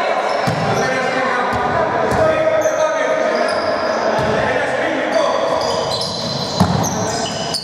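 A basketball thuds as it bounces on the court.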